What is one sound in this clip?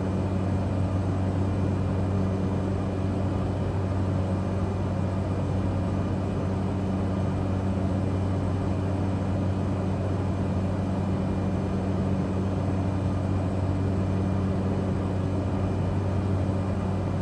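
A small propeller plane's engine drones steadily inside the cockpit.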